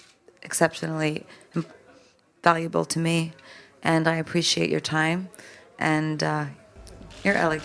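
A young woman speaks calmly into a microphone, with pauses.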